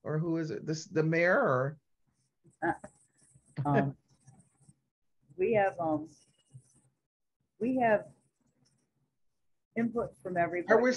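A middle-aged woman speaks with animation over an online call, in short bursts with pauses.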